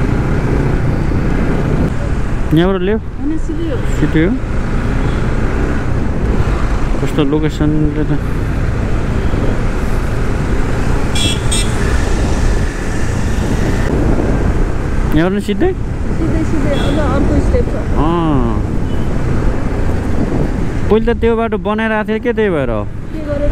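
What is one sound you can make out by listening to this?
A motorcycle engine hums steadily at close range.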